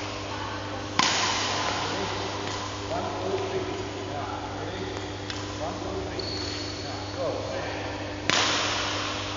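A racket strikes a shuttlecock with a sharp smack.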